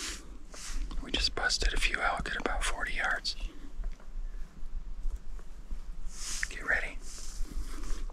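A man blows a high, squealing animal call close by.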